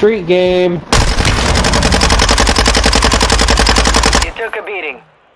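A rapid burst of gunfire rattles loudly.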